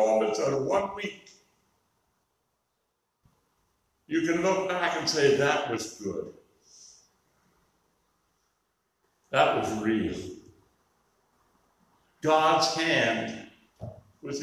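An elderly man preaches calmly in phrases with pauses.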